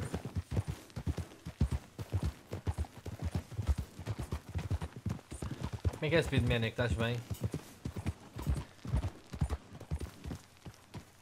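Horses' hooves thud in a quick, steady gallop on a dirt track.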